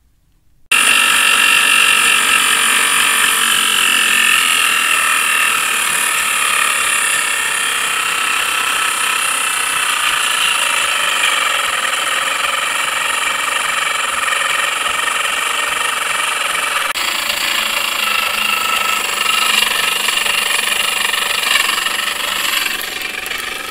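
A pedal-driven blower whirs and scrapes steadily.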